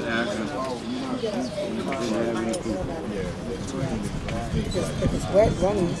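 Several people chat nearby.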